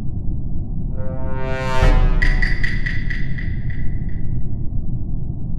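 A bright electronic chime rings out and fades.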